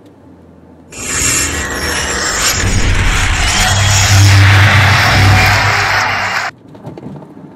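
A game's logo intro plays with a loud rushing boom.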